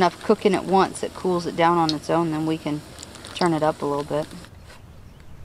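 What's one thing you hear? Food sizzles on a hot pan.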